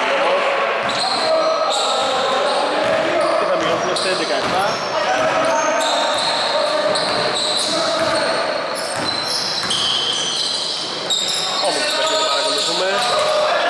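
Sneakers squeak on a hard floor in an echoing hall.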